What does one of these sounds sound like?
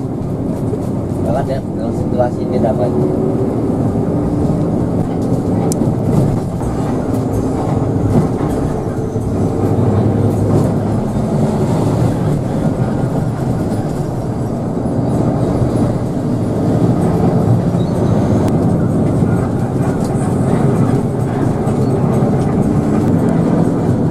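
A bus engine drones steadily from inside the cab.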